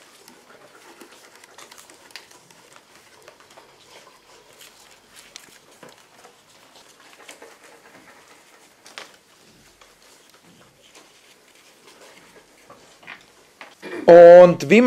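Paper rustles softly as a child works with it.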